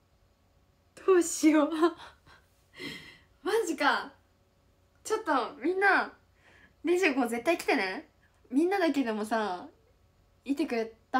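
A young woman talks excitedly and laughs close by.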